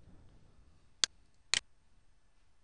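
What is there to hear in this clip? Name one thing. A computer mouse clicks twice.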